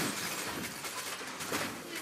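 Magical blasts whoosh and crackle.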